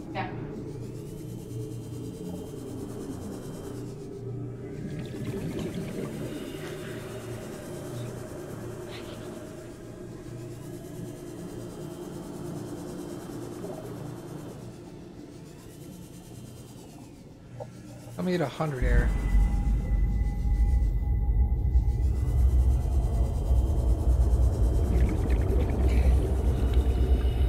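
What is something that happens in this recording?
A vehicle's engine hums steadily, growing to a loud deep rumble.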